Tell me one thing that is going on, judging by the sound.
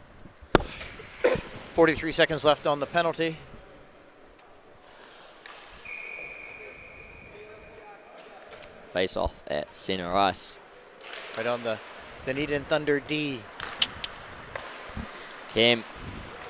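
Young players shout across an echoing ice rink.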